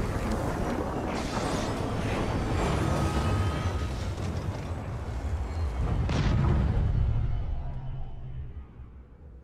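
A huge spaceship's engines rumble deeply as it hovers and slowly descends.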